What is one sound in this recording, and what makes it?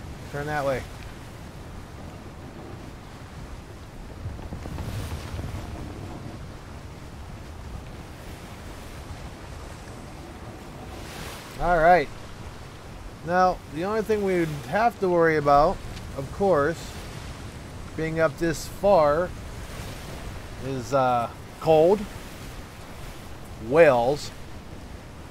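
Waves wash and splash against a sailing ship's hull.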